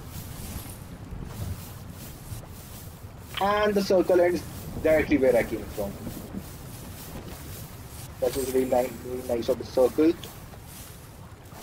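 Footsteps patter quickly over grass and gravel.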